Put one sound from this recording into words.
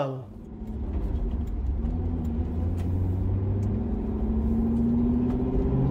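A car engine hums low and steadily from inside the car, rising slightly in pitch.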